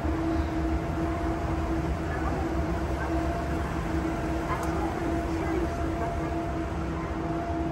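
A moving walkway hums and rumbles steadily.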